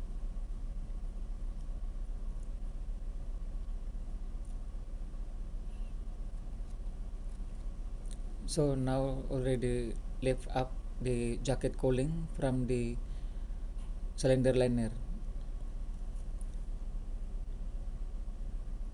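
A machine hums steadily and low.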